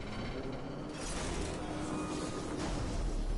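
An electric energy blast crackles and whooshes loudly.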